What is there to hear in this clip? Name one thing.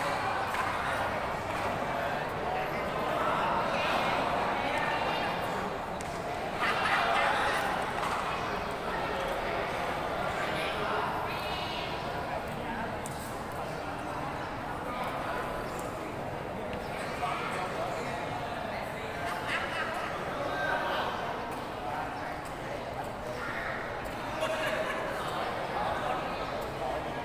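A crowd of spectators chatters throughout a large echoing hall.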